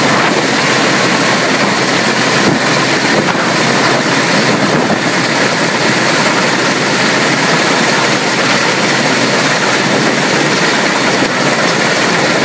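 A helicopter's rotor roars loudly and steadily overhead.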